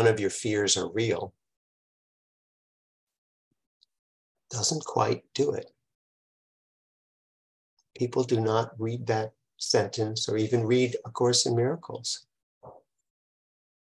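An elderly man speaks calmly and closely into a microphone, pausing between phrases.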